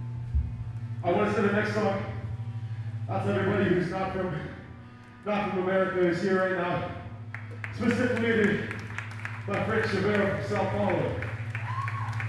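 A man speaks loudly through a microphone and loudspeakers.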